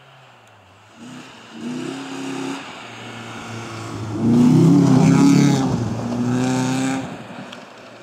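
A rally car engine roars as it approaches and speeds past close by.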